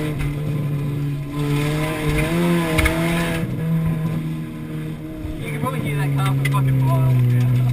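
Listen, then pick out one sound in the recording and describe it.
A car body rattles and bumps over a rough dirt track.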